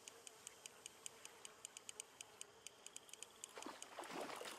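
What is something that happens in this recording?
A fishing reel clicks rapidly.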